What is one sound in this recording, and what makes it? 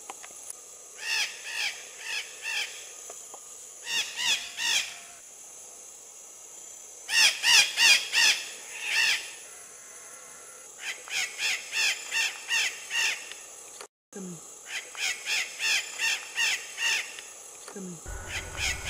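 A parrot squawks in short, repeated bursts outdoors.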